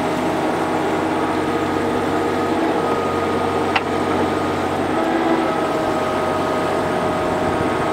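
A diesel mini excavator engine runs under load.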